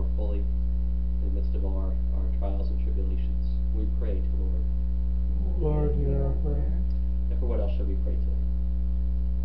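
A man speaks calmly a little way off, then falls silent.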